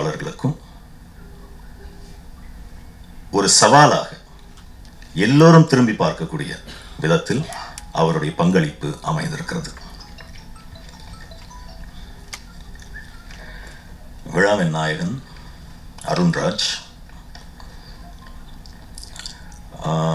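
A man speaks slowly into a microphone over a loudspeaker, with pauses.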